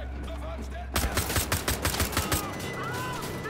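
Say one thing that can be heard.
A pistol fires a quick burst of shots.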